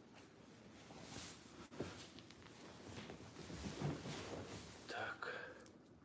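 A leather sofa creaks and rustles as someone sits down.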